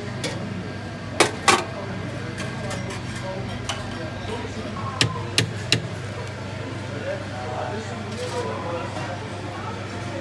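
A metal ladle clinks against steel serving trays.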